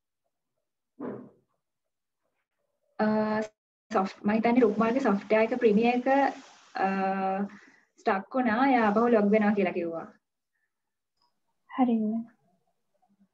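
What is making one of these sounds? A woman speaks with animation.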